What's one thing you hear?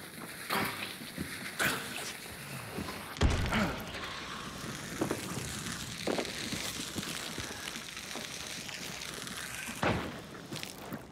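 Loud thuds and bangs ring out.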